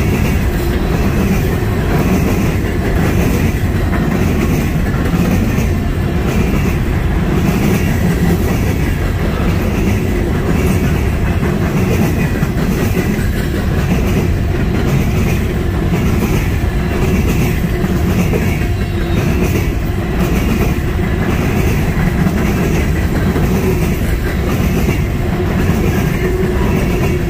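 A long freight train rumbles steadily past up close.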